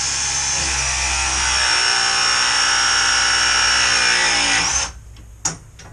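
A power drill whirs steadily close by, then stops.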